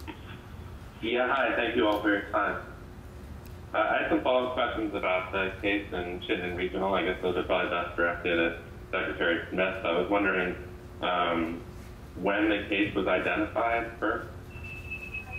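A middle-aged man speaks calmly into microphones.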